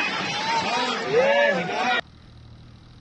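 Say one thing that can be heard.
A crowd of men and women shout and scream close by.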